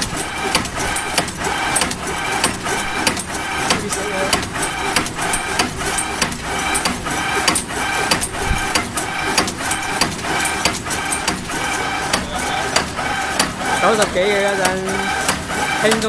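A packaging machine hums steadily.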